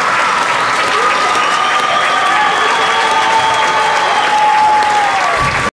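A steel drum band plays a bright, ringing melody in a large echoing hall.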